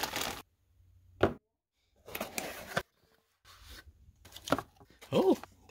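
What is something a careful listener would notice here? A cardboard box lid slides open.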